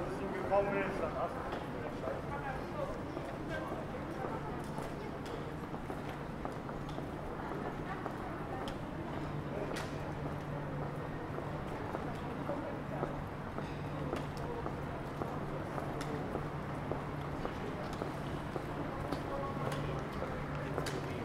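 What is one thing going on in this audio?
A crowd of passers-by murmurs faintly outdoors.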